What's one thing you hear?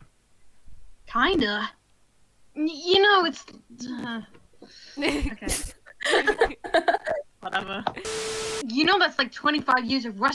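A teenage boy replies with surprise.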